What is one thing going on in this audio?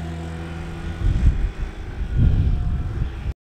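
Wind buffets outdoors in gusts.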